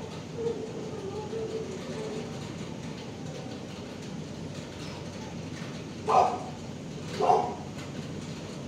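A dog whimpers softly in its sleep.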